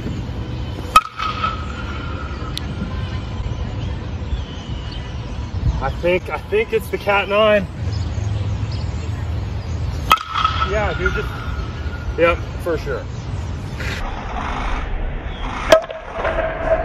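A metal bat cracks sharply against a baseball, ringing briefly.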